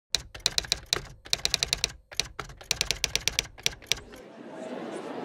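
Typewriter keys clatter in quick bursts of sharp clicks.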